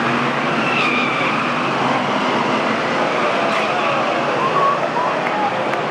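Several racing car engines roar and whine loudly as they speed around a track.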